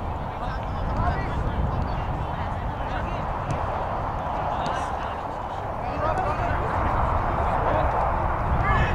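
Young players shout to one another across an open field.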